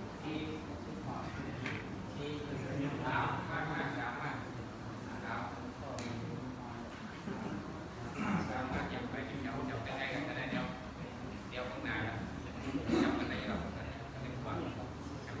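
Several men talk quietly nearby in a room.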